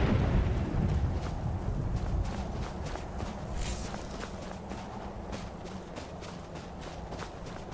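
Footsteps crunch on snow at a steady walking pace.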